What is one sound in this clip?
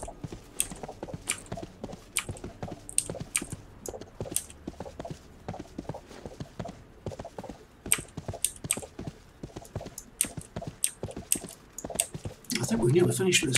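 Hooves clop quickly and steadily at a gallop.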